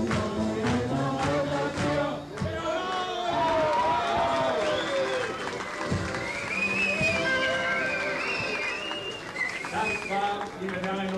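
An elderly man sings loudly through a microphone in a large hall.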